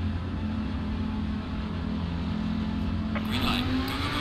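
A race car engine idles with a low, steady rumble.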